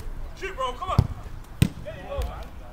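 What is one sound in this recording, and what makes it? A football is kicked hard with a thud.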